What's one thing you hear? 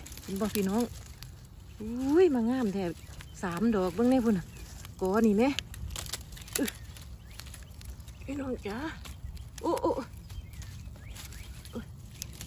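Dry pine needles rustle under a hand.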